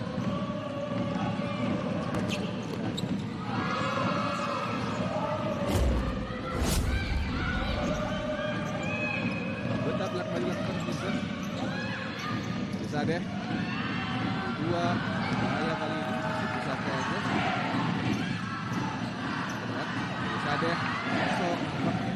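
Players' shoes squeak on a hard court.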